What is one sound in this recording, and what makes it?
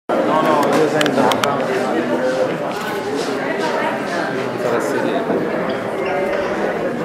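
A woman speaks with animation into a microphone through loudspeakers in an echoing hall.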